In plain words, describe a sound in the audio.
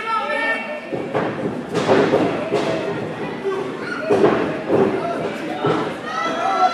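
Bodies slam onto a wrestling ring's mat with loud thuds.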